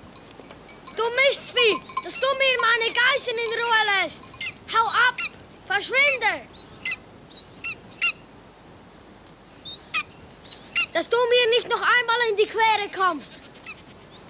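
A large bird cries out shrilly again and again overhead.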